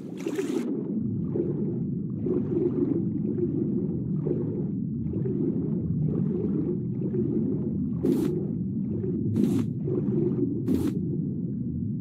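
A muffled underwater rumble drones steadily.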